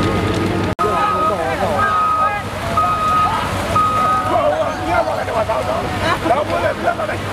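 A large crowd of men shouts and calls out outdoors.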